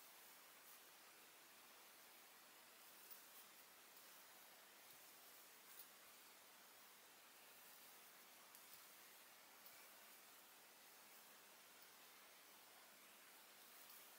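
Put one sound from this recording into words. A plastic crochet hook clicks softly against yarn.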